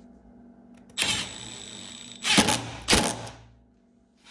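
A power drill whirs as it drives a bolt.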